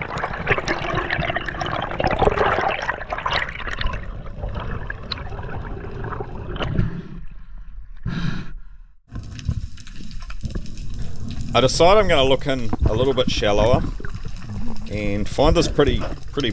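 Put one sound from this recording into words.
Water rushes and bubbles, heard from underwater.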